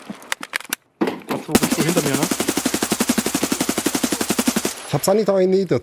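A rifle fires a long rapid burst of shots.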